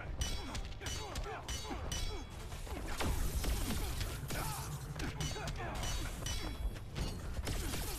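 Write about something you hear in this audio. Punches and kicks land with heavy thuds and impacts.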